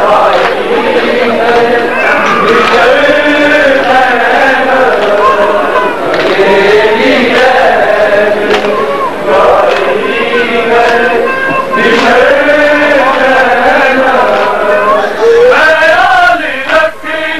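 A crowd of men chants loudly in a mournful sing-song.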